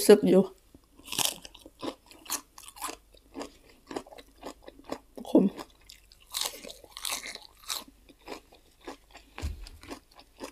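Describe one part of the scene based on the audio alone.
A young woman chews food up close with crisp crunching and smacking.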